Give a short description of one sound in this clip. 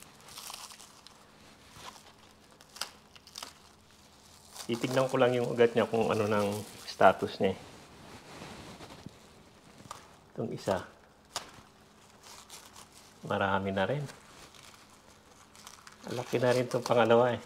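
Plant leaves and stems rustle softly as they are handled.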